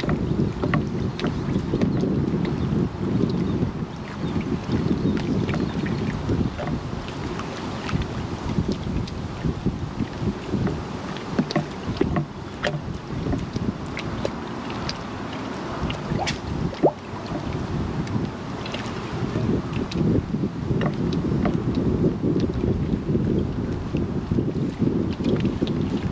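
Small waves lap against the bank.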